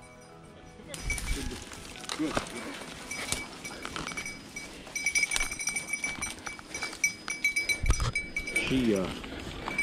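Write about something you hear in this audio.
Footsteps crunch through dry leaves and brush.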